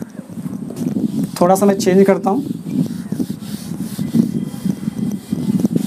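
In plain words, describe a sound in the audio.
A board eraser rubs against a whiteboard.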